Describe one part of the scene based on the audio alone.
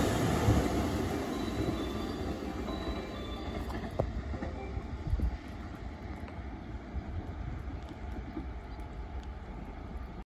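A second train approaches slowly from a distance with a low rumble.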